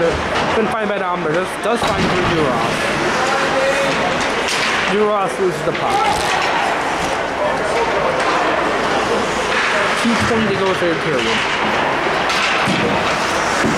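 Ice skates scrape and carve across the ice in a large echoing arena.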